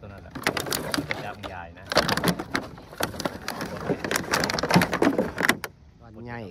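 Water laps against a wooden boat.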